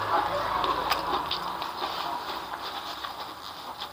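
A man blows his nose into a tissue close to a microphone.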